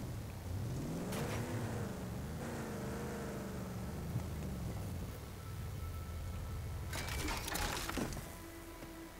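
A vehicle engine rumbles and revs.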